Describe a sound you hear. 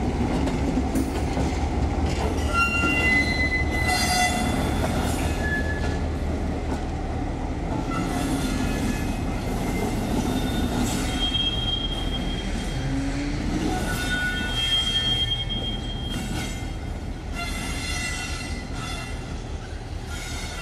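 A diesel locomotive rumbles steadily as it pulls away.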